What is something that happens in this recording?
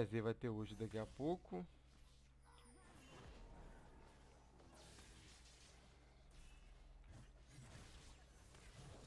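Fantasy battle sound effects whoosh and crackle in a video game.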